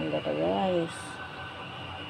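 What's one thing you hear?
Liquid pours into a pot.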